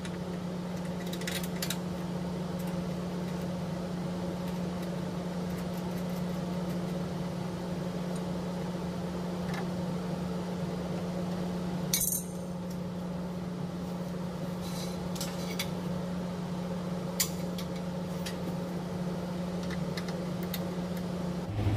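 Metal cable connectors clink and click as they are handled.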